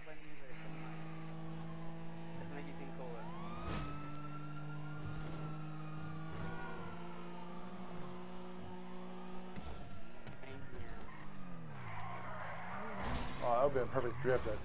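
A car engine revs and hums as the car speeds along.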